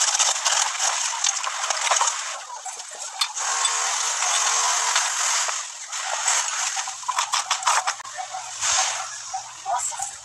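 A brick knocks and scrapes against other bricks.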